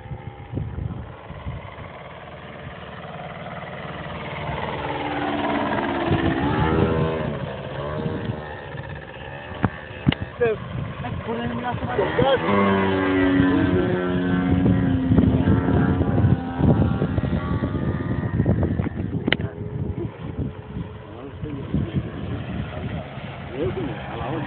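A model airplane engine whines overhead, its pitch rising and falling as it passes.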